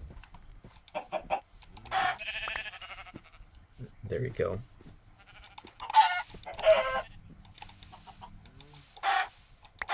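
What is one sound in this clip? Chickens cluck in short bursts.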